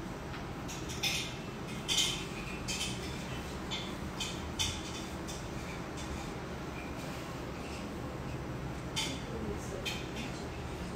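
A makeup brush dabs and sweeps softly against skin.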